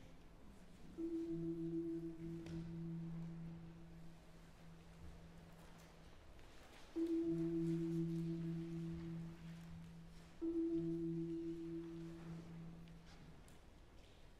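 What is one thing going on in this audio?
Low mallet notes ring out on a marimba and slowly fade, in a reverberant hall.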